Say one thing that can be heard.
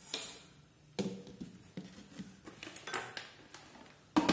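Liquid sloshes in a metal pot.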